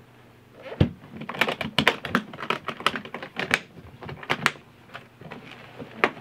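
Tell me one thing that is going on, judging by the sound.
Metal latches on a guitar case click and snap shut.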